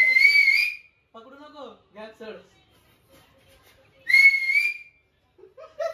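A shrill whistle sounds loudly, twice.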